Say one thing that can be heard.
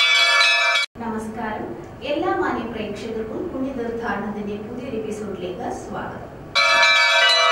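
A young woman speaks clearly and steadily into a microphone.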